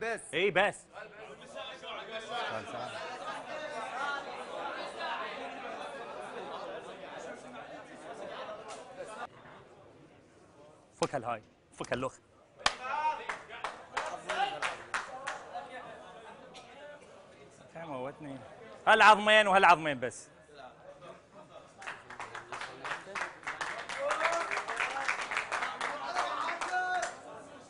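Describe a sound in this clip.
A crowd of men murmurs and chatters.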